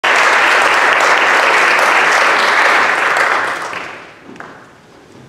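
An audience applauds in a large echoing hall, then the clapping fades away.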